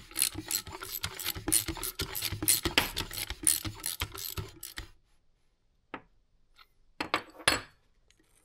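A metal tool clinks and scrapes against an engine part.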